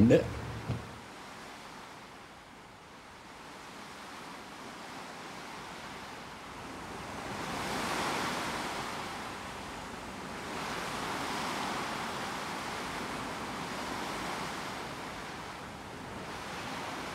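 Water rushes softly along a ship's hull.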